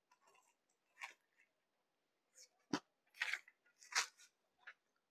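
Cloth rustles and flaps as it is unfolded.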